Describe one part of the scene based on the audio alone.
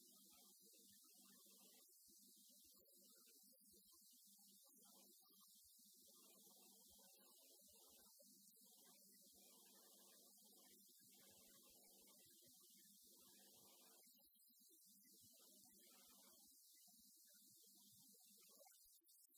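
A man lectures steadily through a microphone in a large echoing hall.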